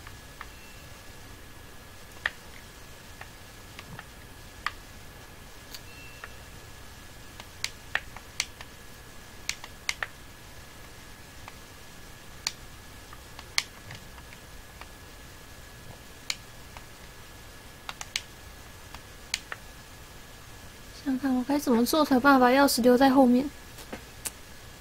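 Short electronic clicks and taps sound now and then.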